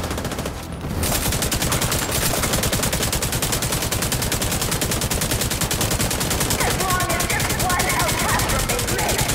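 Rapid gunfire rattles continuously.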